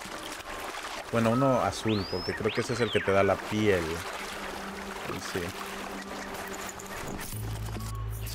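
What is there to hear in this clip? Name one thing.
Water splashes and sloshes as a character wades through a pond.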